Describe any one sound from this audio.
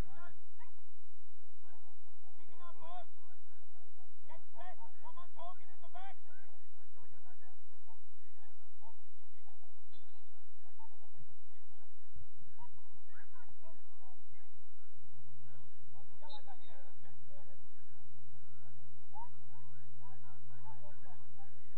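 Young players shout to one another in the distance across an open field.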